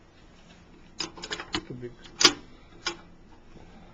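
Metal parts click and tap as a hand works a small valve lever.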